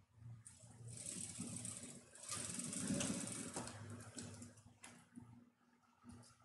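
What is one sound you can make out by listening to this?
A sewing machine runs with a fast, steady whirr.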